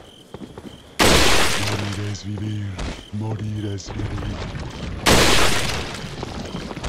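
A rifle fires a loud, sharp shot that echoes.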